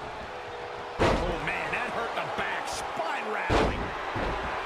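A body slams heavily onto a wrestling mat.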